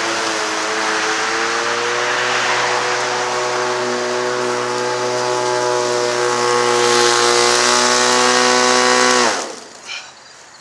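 An electric lawn mower hums steadily while cutting grass, then winds down and stops.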